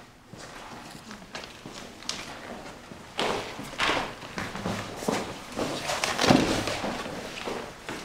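People shuffle and walk on a wooden floor.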